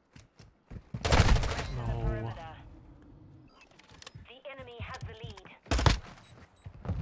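Gunshots crack loudly in a video game.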